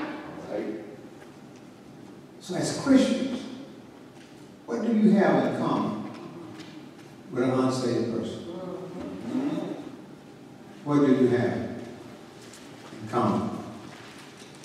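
A man preaches forcefully into a microphone in bursts, echoing through a large hall.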